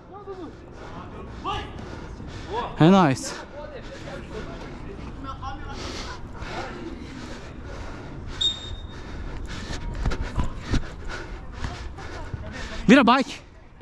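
Young men shout loudly to each other outdoors.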